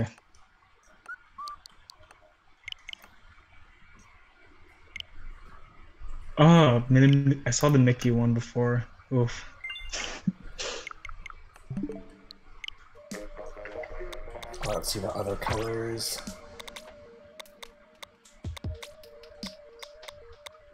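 Short electronic menu blips sound as selections are made.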